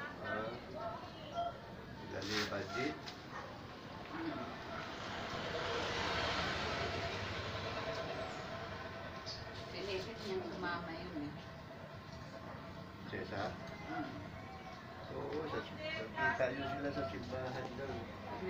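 An elderly woman talks nearby.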